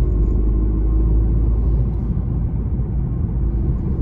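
A large truck passes close by.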